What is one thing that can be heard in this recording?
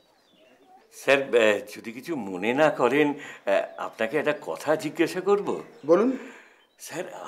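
An older man speaks with animation, close by.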